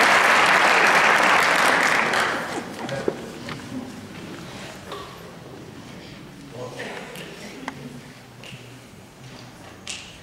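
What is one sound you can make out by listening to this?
A double bass plucks low notes.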